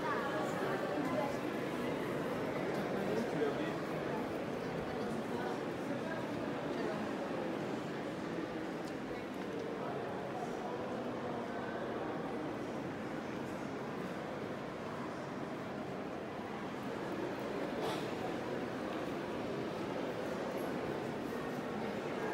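Footsteps shuffle on a hard stone floor.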